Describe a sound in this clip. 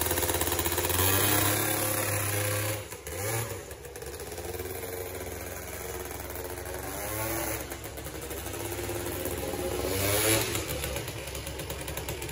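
A scooter engine buzzes and revs up and down.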